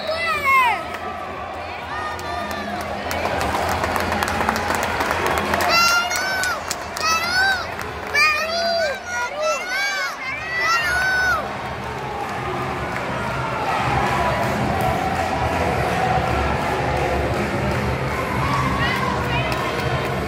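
A crowd of spectators shouts and cheers in an echoing indoor arena.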